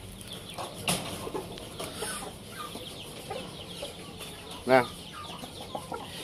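Chickens peck at sandy ground.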